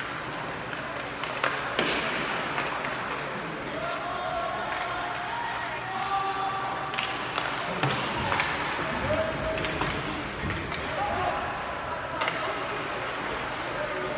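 Ice skates scrape and hiss across an ice rink.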